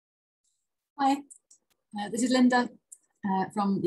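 A middle-aged woman speaks calmly and close to the microphone.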